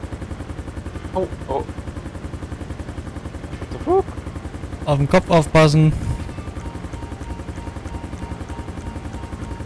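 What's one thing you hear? A helicopter's rotor thumps rapidly and steadily nearby.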